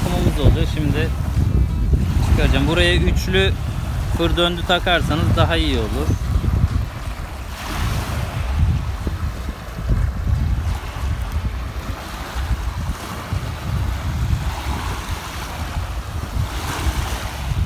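Small waves wash gently onto a sandy shore.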